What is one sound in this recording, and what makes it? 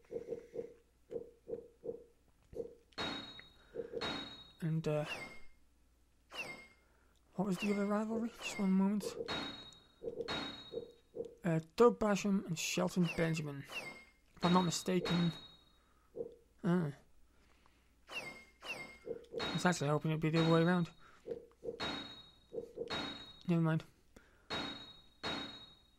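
Short electronic menu blips click and chime.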